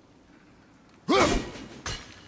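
An axe whooshes through the air.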